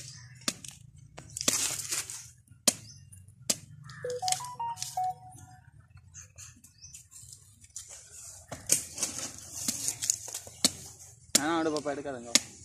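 A sickle chops sharply into tough fruit husks.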